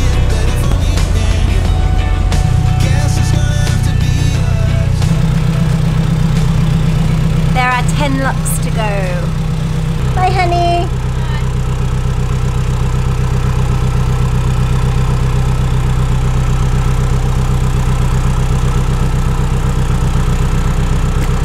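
A boat engine chugs steadily close by.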